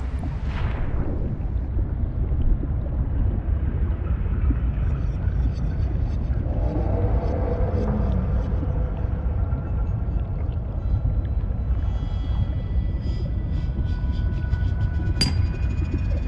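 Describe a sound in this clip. A low underwater rumble drones on steadily.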